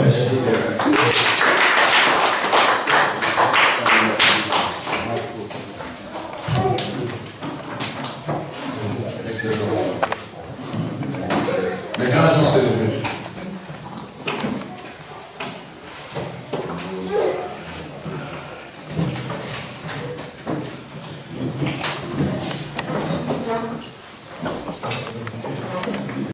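A man speaks into a handheld microphone with animation, heard through loudspeakers in an echoing hall.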